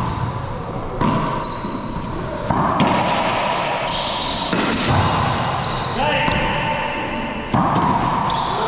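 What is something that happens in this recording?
A racquetball smacks off the walls and racquets with sharp echoing cracks in a large echoing hall.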